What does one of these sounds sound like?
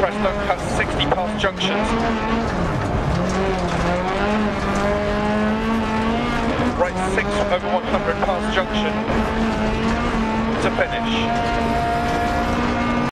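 A rally car engine roars and revs up and down through gear changes.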